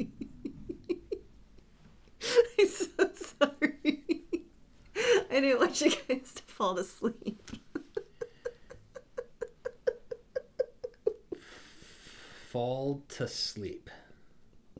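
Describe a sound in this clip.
A young man laughs and talks with amusement close to a microphone.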